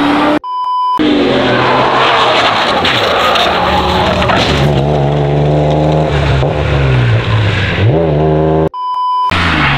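A car engine roars loudly and changes pitch.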